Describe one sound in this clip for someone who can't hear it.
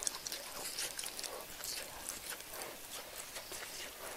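A person chews food with small smacking sounds.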